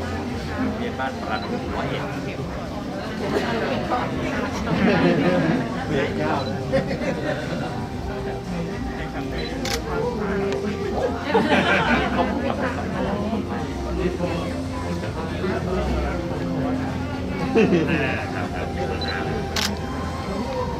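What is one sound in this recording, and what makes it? Several people murmur in a room with a light echo.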